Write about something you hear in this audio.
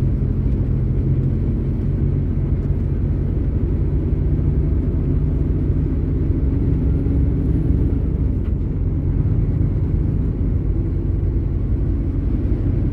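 A large vehicle's engine rumbles low and steady while driving along a road.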